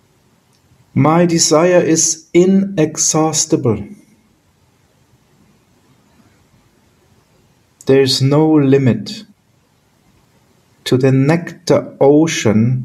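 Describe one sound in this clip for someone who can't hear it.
A middle-aged man speaks calmly through an online call, in short bursts with pauses.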